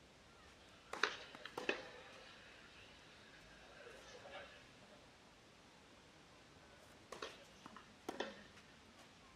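Tennis rackets strike a ball in a rally.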